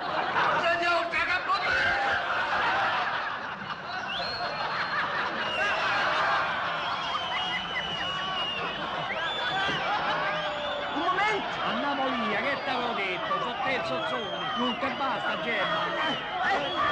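An audience laughs and chatters loudly in a large hall.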